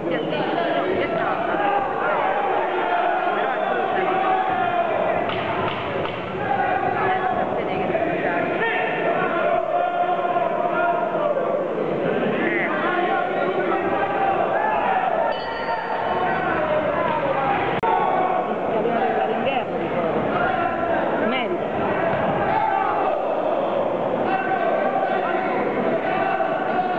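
A crowd shouts and cheers loudly in a large echoing hall.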